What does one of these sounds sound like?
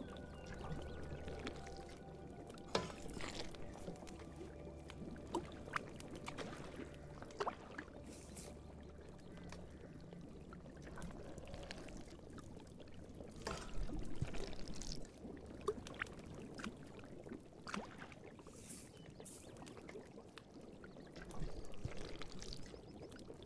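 A ladle stirs and clinks against a cooking pot.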